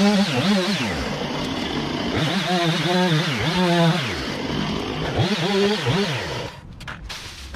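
A chainsaw revs up and down loudly, close by.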